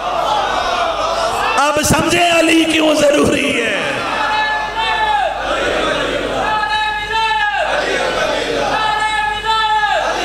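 A crowd of men beat their chests in rhythm.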